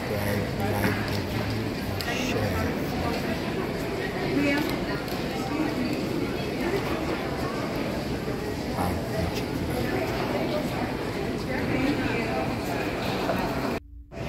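Suitcase wheels roll across a hard floor.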